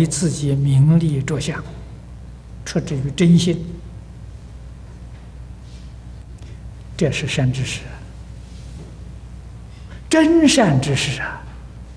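An elderly man speaks slowly and deliberately into a microphone, with long pauses.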